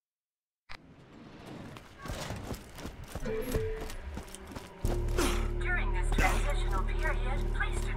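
Footsteps tread on rocky ground.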